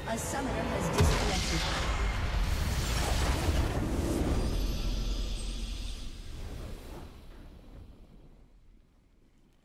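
A victory fanfare swells and then fades.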